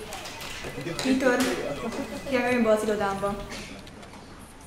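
A teenage girl speaks calmly, close to the microphone.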